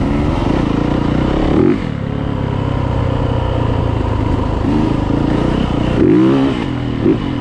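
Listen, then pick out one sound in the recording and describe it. Tyres rumble over a bumpy dirt trail.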